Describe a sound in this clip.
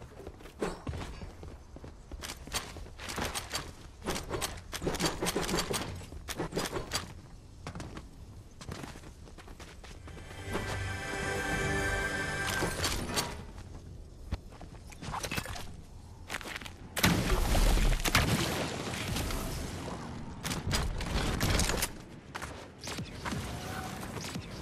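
Quick footsteps patter across floors and ground.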